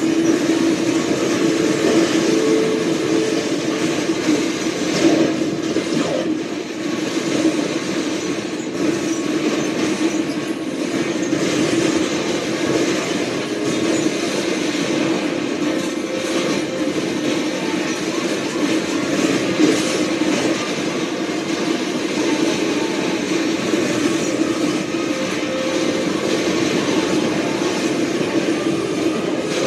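Loud video game music plays from a television speaker.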